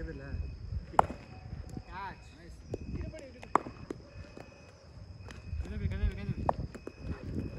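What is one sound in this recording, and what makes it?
A cricket ball cracks sharply off a bat.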